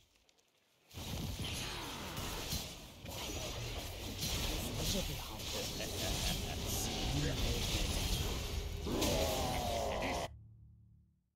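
Magic blasts and impacts crackle and boom in a fast game battle.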